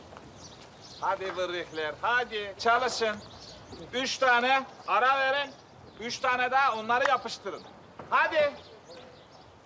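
A middle-aged man speaks loudly and with animation, close by.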